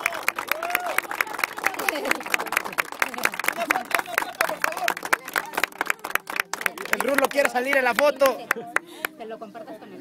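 A group of people clap their hands rapidly outdoors.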